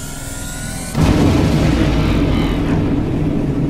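A fog machine hisses loudly.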